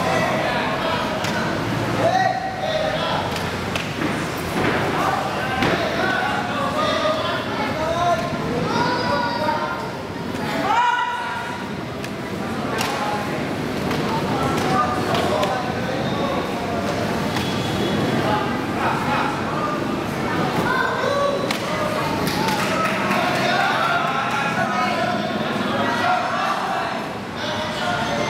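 A crowd of spectators shouts and cheers loudly close by.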